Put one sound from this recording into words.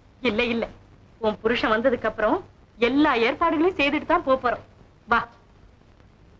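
A woman speaks cheerfully and with animation, close by.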